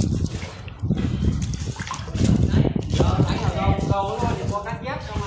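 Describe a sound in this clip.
Water splashes and laps as a person swims.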